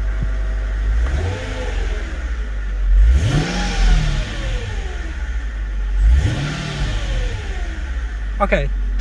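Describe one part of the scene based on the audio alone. A car engine revs up and falls back several times.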